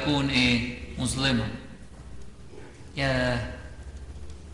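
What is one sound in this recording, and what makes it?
An elderly man chants into a microphone in a large echoing hall.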